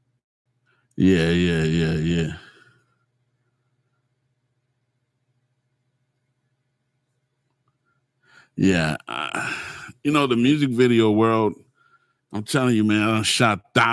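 A middle-aged man speaks calmly and close into a microphone, in short bursts with pauses.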